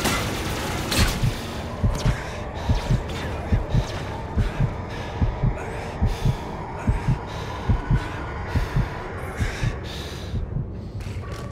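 Heavy footsteps thud at a steady pace.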